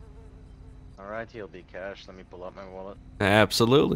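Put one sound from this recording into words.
A man speaks calmly through a microphone.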